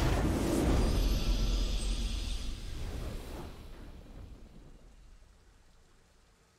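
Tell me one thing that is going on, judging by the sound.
A triumphant game fanfare booms and slowly fades away.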